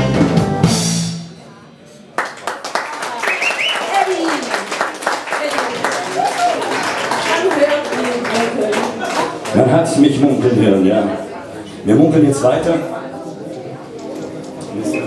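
A band plays a song with drums and guitars.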